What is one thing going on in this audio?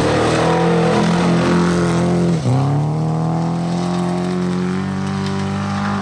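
Gravel sprays and crunches under spinning tyres.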